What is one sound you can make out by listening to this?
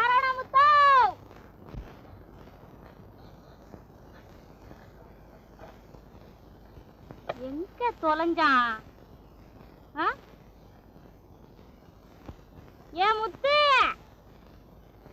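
A young woman calls out loudly in long, rising and falling cries.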